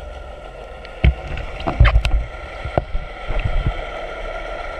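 Water splashes and gurgles close by as a swimmer breaks the surface.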